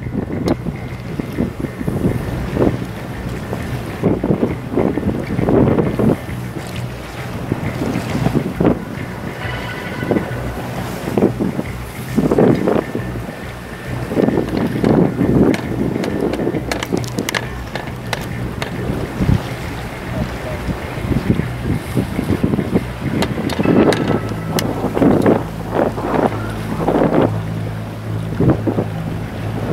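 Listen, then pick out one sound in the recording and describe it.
Choppy water laps and splashes.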